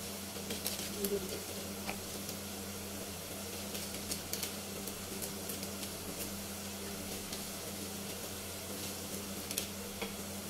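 A gas burner hisses steadily.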